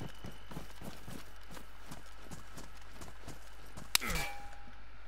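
Footsteps crunch steadily over the ground.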